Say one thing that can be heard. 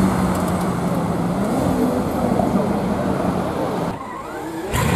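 A sports car's engine rumbles loudly as it drives along a street.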